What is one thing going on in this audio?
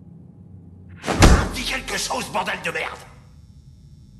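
An older man shouts angrily at close range.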